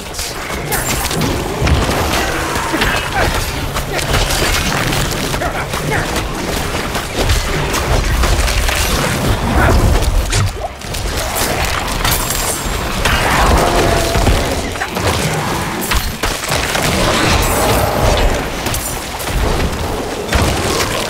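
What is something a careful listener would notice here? Game combat sounds clash and crash with dense hits and bursts.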